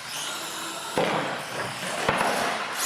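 A toy truck's plastic wheels thump onto a hard floor after a jump.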